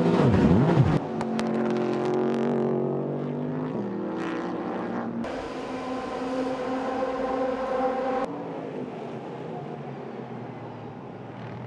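A race car engine roars as the car speeds along a track.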